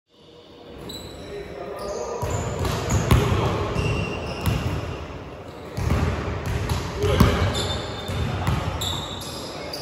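Sneakers squeak on a court floor.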